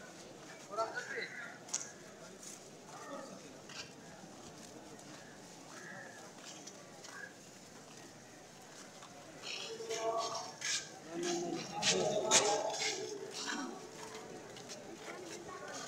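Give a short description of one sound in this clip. A crowd of men murmurs and calls out nearby outdoors.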